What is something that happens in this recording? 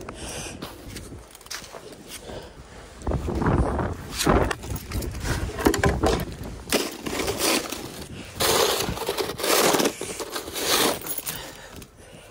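A snow shovel scrapes and scoops through packed snow.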